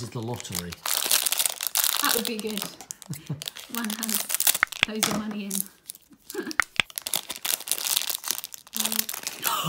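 A foil packet crinkles and rustles in hands.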